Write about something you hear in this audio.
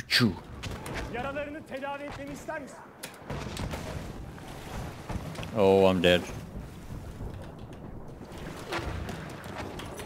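Water splashes and sloshes as someone swims.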